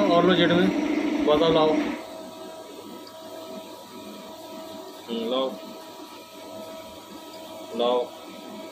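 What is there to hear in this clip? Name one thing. A lathe hums steadily while its tool cuts metal.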